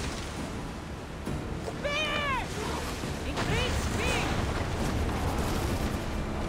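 Waves splash and rush against a ship's hull.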